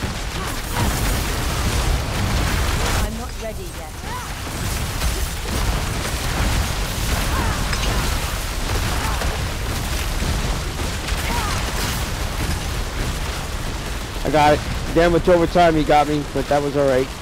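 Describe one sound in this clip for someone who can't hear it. A deep rumbling roar of game combat rolls on steadily.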